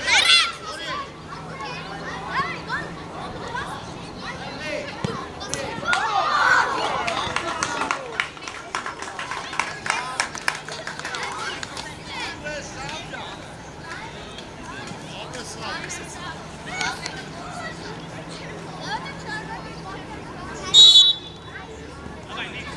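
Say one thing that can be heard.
Young children shout and call out outdoors.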